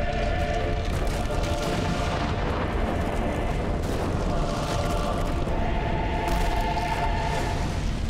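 Huge stone slabs grind and rumble as they rise from the ground.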